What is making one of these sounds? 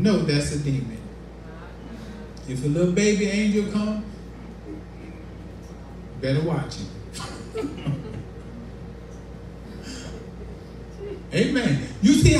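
A man preaches with animation through a microphone and loudspeaker, pausing between phrases.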